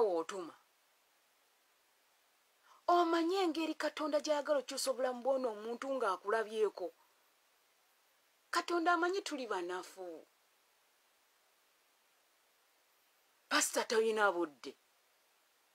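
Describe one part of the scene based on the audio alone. A woman speaks calmly and close to a phone microphone, in short bursts with long pauses.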